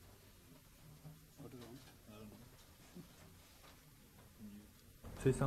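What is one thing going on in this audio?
A man talks quietly, a little way off.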